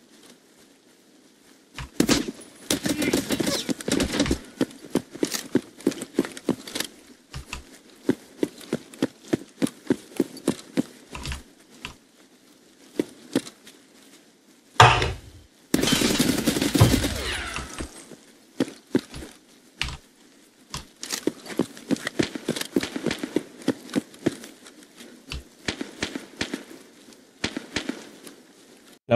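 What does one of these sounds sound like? Footsteps fall on pavement.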